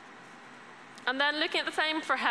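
A young woman speaks clearly into a microphone, heard through a loudspeaker in a large hall.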